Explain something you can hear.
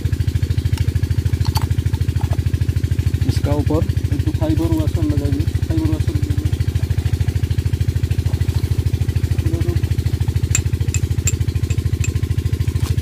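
Metal parts clink as they are handled.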